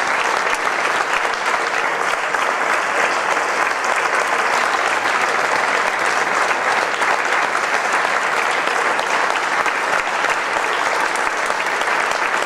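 A large crowd applauds steadily in an echoing hall.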